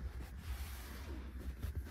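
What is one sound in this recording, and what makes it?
A hand brushes against a leather car seat.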